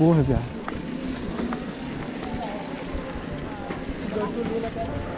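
Bicycle tyres roll over a dirt road.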